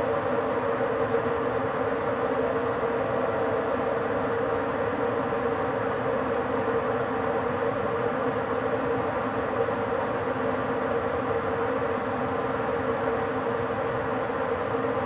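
A train hums steadily as it rolls slowly along the tracks.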